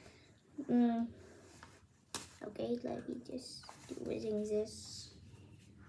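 Book pages rustle as they turn.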